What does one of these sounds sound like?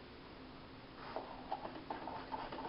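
Dishes clatter in a sink.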